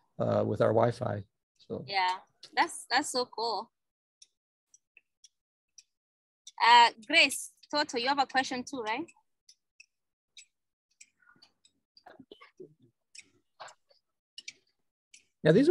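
Children speak aloud together in a room.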